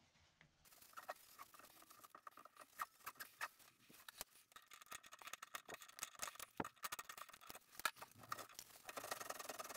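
A metal tool scrapes and clicks against a drain fitting.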